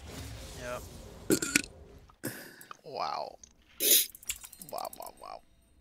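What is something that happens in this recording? Short electronic game sound effects chime and swish.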